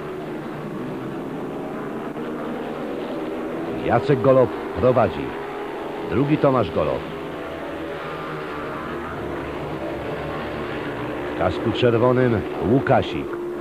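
Motorcycle engines roar steadily as bikes race past.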